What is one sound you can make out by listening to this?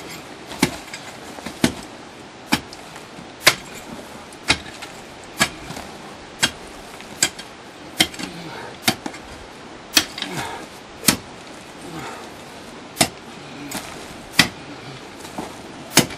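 A tool strikes hard, rocky earth sharply and rhythmically, about once a second.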